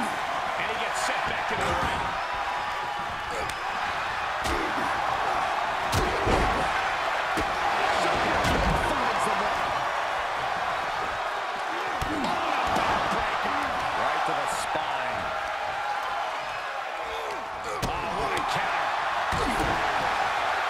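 Heavy bodies slam down onto a wrestling ring with loud thuds.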